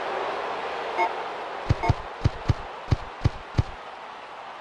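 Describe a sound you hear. Menu selection clicks beep in quick succession.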